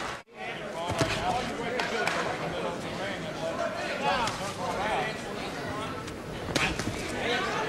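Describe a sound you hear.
Gloved punches land with sharp thuds.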